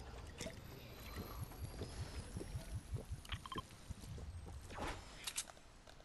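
A character gulps down a drink in quick swallows.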